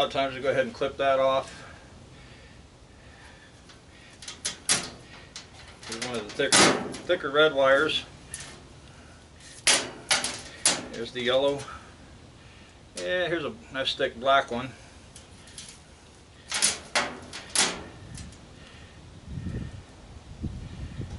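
Wires rustle and clink in a man's hands.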